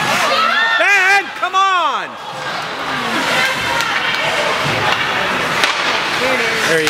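Skate blades scrape across the ice.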